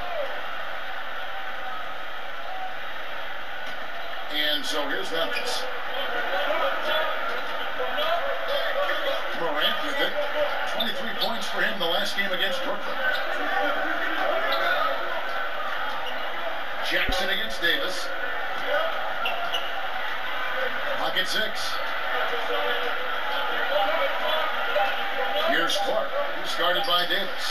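A large arena crowd murmurs and cheers steadily.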